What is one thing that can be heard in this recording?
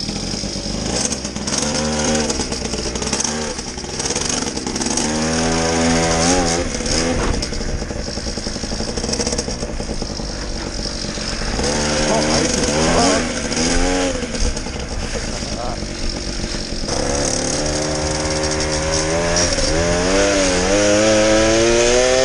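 A 50cc two-stroke gas scooter engine revs up and down.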